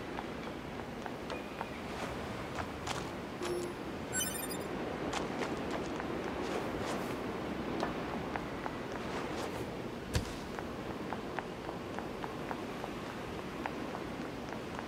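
Footsteps patter quickly over hard ground.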